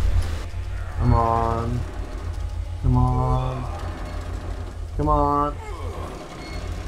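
A man grunts loudly with effort.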